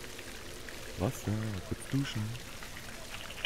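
A man speaks briefly and calmly into a headset microphone.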